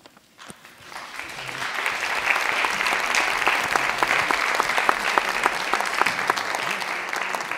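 An audience applauds, the clapping building up and going on steadily.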